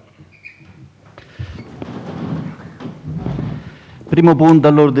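People shuffle and sit down on chairs.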